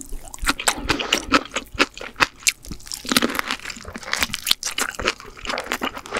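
Lobster shell cracks and crunches as a young woman bites into it.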